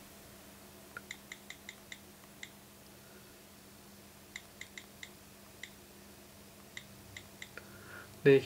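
A phone keyboard clicks softly with each quick tap.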